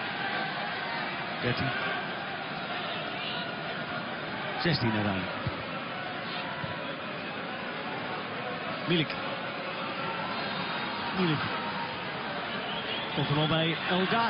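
A large stadium crowd murmurs and chants steadily in the open air.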